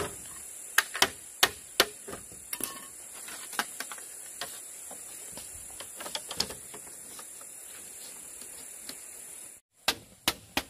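Bamboo strips clatter and knock together.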